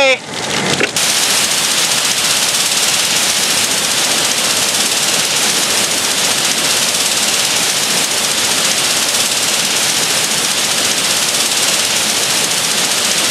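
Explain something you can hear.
A fire hose sprays a jet of water.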